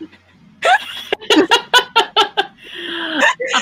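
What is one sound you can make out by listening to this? A young woman laughs loudly over an online call.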